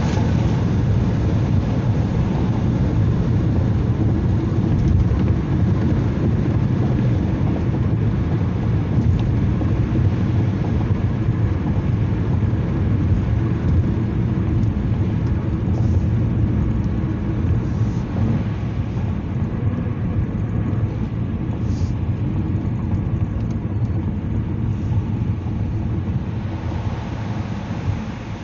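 A vehicle's engine and tyres rumble steadily on a highway.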